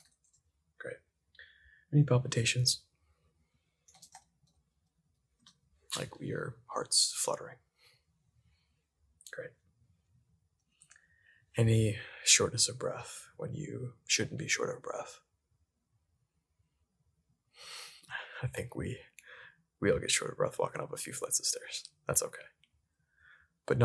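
A young man speaks close to a microphone in short bursts, with pauses.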